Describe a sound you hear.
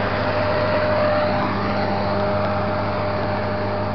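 A combine harvester roars as it cuts the crop.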